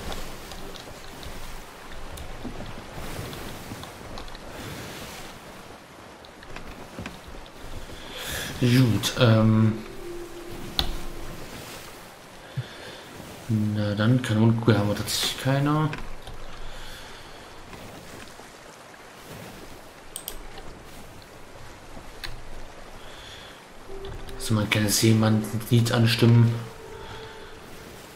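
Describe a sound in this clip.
Waves roll and crash against a wooden ship at sea.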